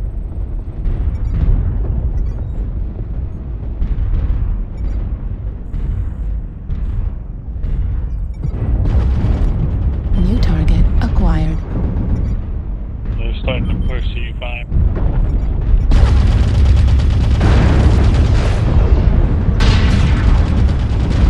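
Heavy mechanical footsteps thud and rumble steadily.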